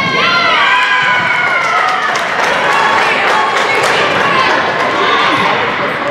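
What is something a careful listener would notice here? Teenage girls shout and cheer together in a large echoing gym.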